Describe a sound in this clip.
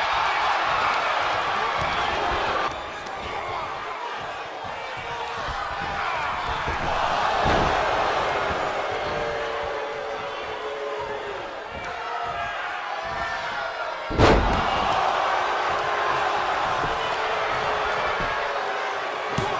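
A large crowd cheers and roars steadily in a big arena.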